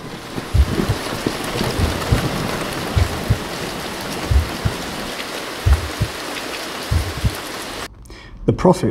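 Steady rain pours down outdoors.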